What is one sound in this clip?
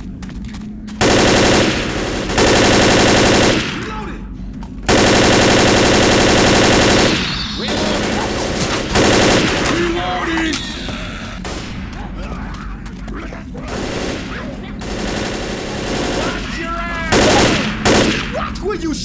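An automatic rifle fires rapid, loud bursts.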